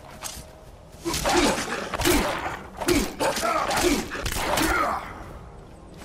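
A large beast growls and roars fiercely.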